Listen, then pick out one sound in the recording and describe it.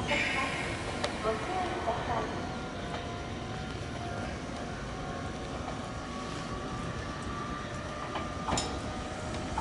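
An electric train pulls into the station and slows down.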